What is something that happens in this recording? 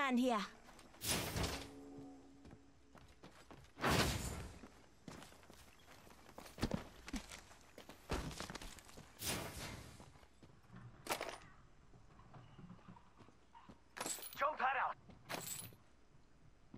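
Game item pickups make short metallic clicks and clatters.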